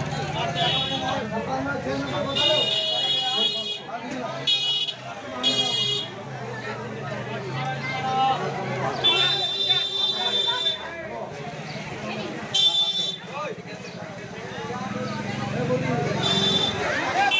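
Several men and women talk over one another at a crowded counter.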